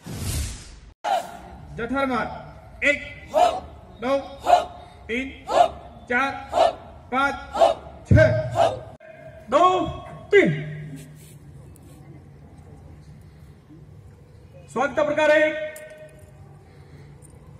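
A man shouts drill commands loudly over a loudspeaker outdoors.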